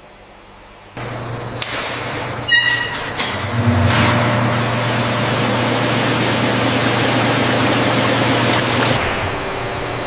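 An electric pump hums steadily.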